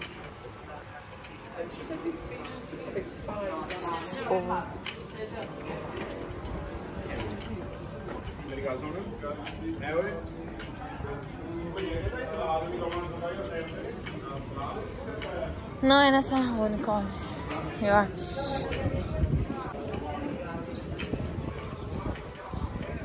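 Men and women chat nearby in a quiet outdoor street.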